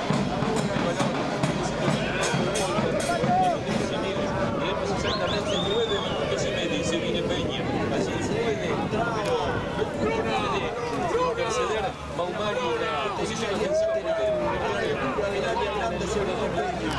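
Men shout across an outdoor playing field.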